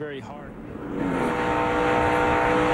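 A race car engine roars loudly at high speed.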